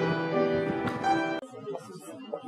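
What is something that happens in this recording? A woman sings into a microphone indoors.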